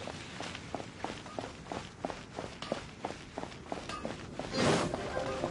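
Quick footsteps patter on stone paving.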